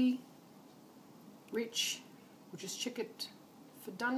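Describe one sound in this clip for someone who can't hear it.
A spoon scrapes and taps inside a metal pot.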